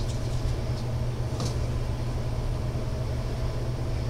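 A small plastic cup is set down on a hard board with a light tap.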